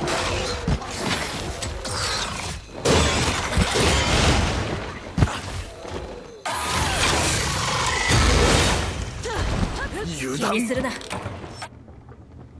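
Blades strike with heavy impacts.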